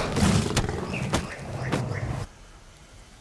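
A large cat snarls and growls up close.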